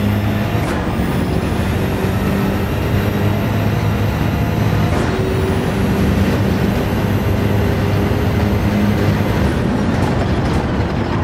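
A racing car's gearbox snaps through quick gear changes.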